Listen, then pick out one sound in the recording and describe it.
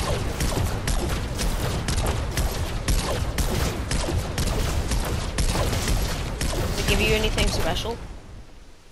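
A pickaxe chops rapidly and repeatedly into a tree trunk.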